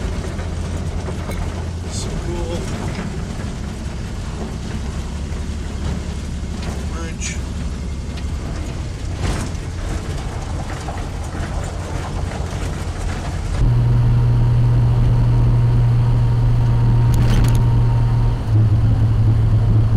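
An old car's engine rumbles steadily from inside the cab.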